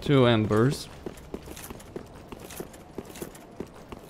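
Armoured footsteps clink on stone.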